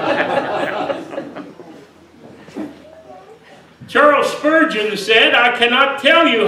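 An elderly man preaches with animation into a microphone in an echoing hall.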